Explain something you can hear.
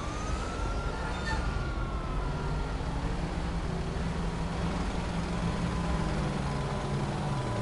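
A truck engine hums nearby.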